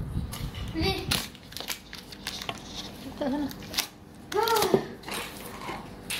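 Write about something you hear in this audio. A cardboard flap scrapes and creaks as it is pulled open.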